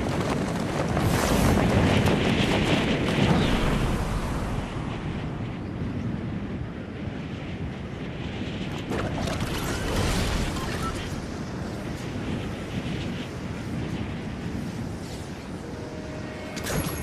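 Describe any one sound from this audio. Wind rushes loudly during a fall through the air.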